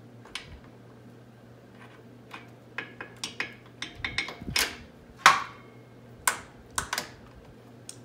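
Metal parts click and clink as a shock absorber is adjusted by hand.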